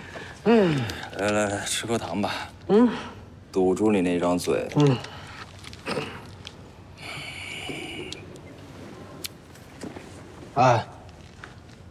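A man talks calmly nearby, in short bursts.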